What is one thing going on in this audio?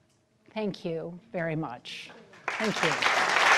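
A woman speaks to an audience through a microphone.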